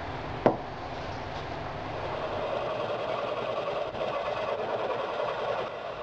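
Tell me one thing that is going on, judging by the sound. A metal file rasps back and forth across metal.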